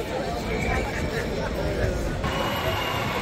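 A crowd of people chatters outdoors at a distance.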